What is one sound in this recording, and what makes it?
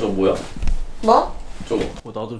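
A young woman asks a short, startled question.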